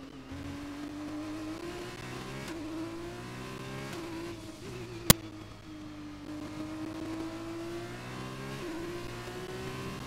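A racing car engine whines steadily, its pitch rising through the gears and dropping as it shifts.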